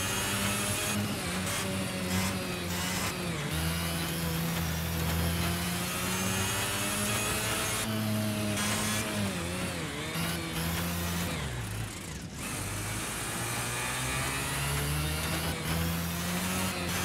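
A kart engine buzzes loudly, its pitch rising and dropping as it speeds up and slows for corners.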